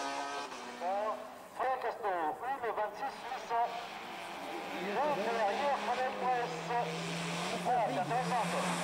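A car engine revs hard, rising and falling as the driver shifts gears.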